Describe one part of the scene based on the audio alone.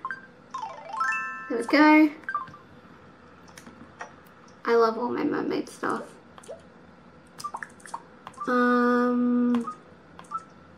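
A handheld game plays short electronic tones and chimes.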